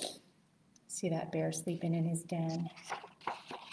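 A woman reads aloud close by, in a clear, lively voice.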